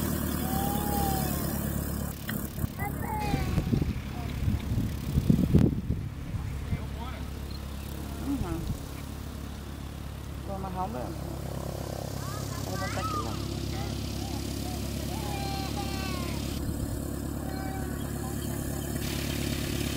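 A small model plane engine idles steadily outdoors.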